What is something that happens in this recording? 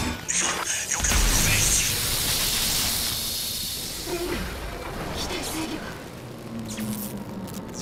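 A powerful blast roars and rumbles, then slowly dies away.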